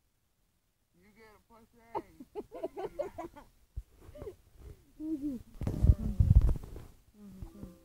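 A child talks with animation close by.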